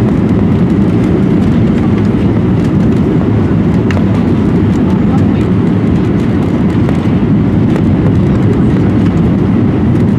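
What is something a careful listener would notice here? Jet engines and rushing air roar steadily inside an airliner cabin on approach.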